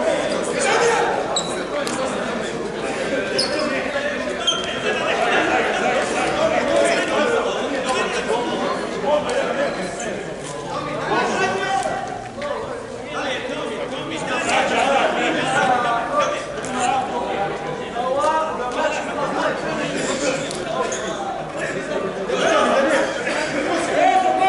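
Men talk in a large echoing hall.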